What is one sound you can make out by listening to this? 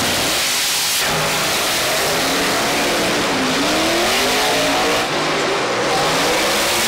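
Race car engines roar loudly as the cars launch and accelerate away.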